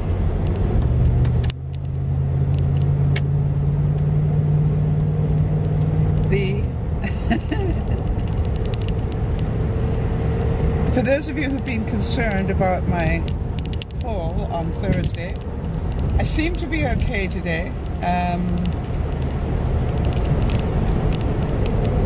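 A car engine hums steadily with road noise.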